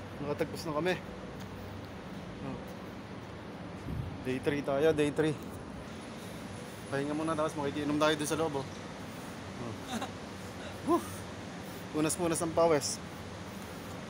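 A man talks with animation close to a phone microphone.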